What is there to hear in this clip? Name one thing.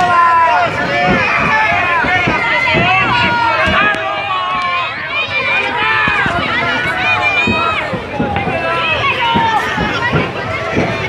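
A large crowd shouts and cheers loudly outdoors.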